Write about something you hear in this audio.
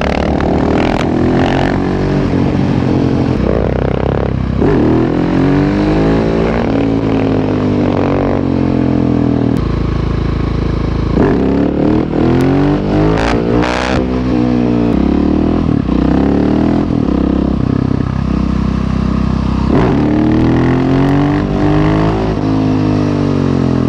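A motorcycle engine revs up and down loudly.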